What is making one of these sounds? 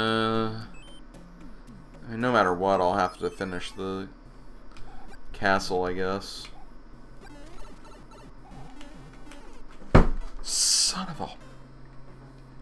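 Electronic video game bleeps and jingles play in short bursts.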